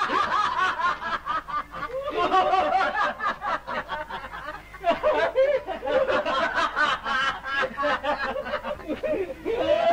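Several men laugh loudly and boisterously.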